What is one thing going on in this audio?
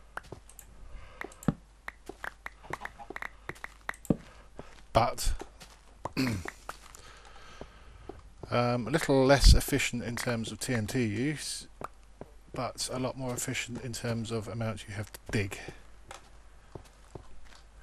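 Footsteps tap on stone at a steady pace.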